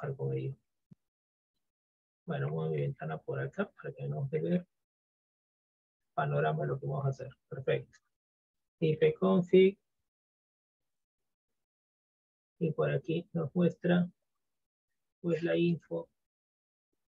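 A man talks calmly and explains over a headset microphone.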